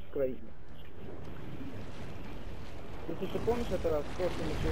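Bubbles rush and swirl underwater.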